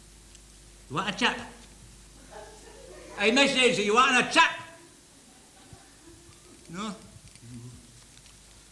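A man answers with animation, a little way off.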